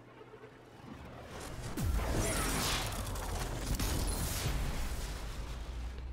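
A portal roars with a rushing, crackling noise.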